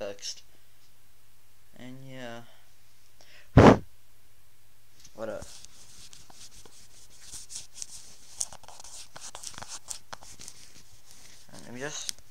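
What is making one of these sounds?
A young man speaks close to a microphone in short bursts.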